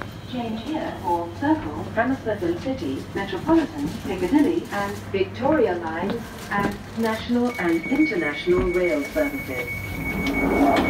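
A train hums and rumbles as it runs.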